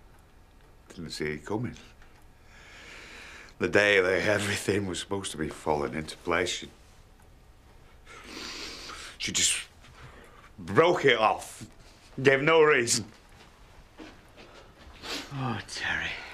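A middle-aged man talks with animation, close by, and raises his voice.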